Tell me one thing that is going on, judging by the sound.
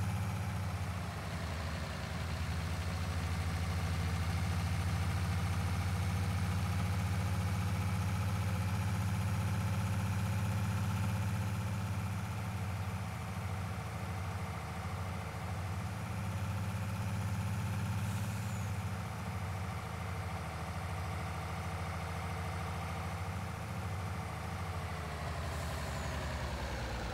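A truck engine drones steadily as the truck drives along.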